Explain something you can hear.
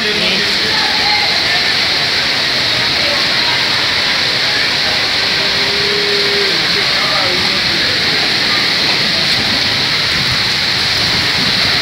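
Floodwater rushes and splashes past.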